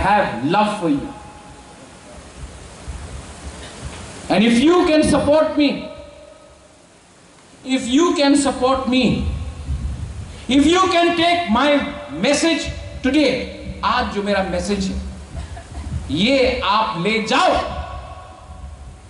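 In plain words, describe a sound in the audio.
A man speaks with animation through a microphone in a slightly echoing hall.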